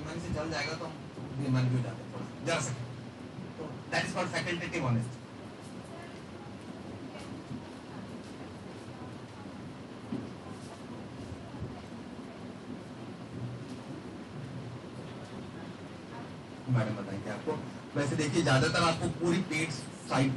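A man speaks with animation into a microphone in an echoing room.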